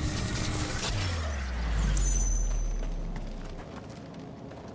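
A low, heavy hum swells and then fades.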